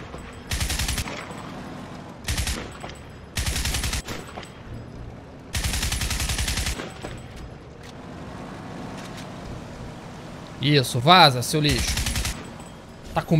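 An automatic rifle fires in short rapid bursts.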